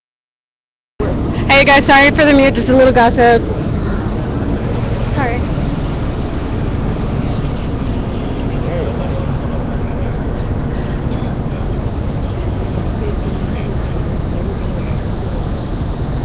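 A crowd murmurs and calls out outdoors.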